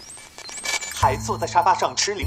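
A young man speaks with animation through a television loudspeaker.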